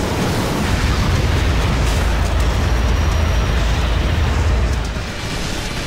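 Rapid gunfire rattles loudly.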